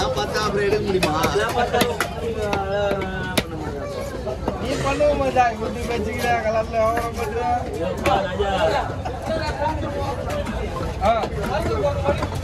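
A cleaver chops through fish on a wooden block with sharp thuds.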